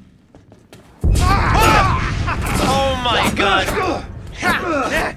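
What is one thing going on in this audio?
A man screams and shouts wildly up close.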